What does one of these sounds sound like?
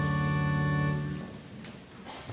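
A choir sings a sustained final chord in a large room.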